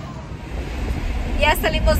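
A woman speaks up close with animation.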